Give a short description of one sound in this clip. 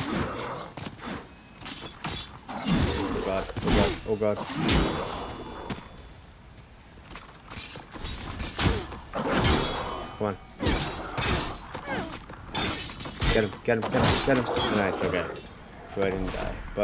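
Blades clash and strike with sharp, quick hits.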